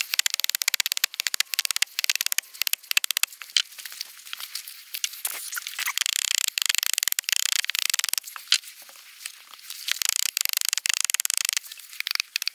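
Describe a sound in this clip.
A knife carves and shaves wood in quick scraping strokes.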